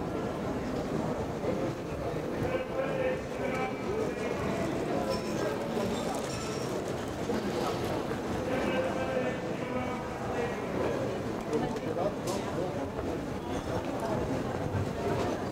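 Passers-by murmur and walk along a busy street outdoors.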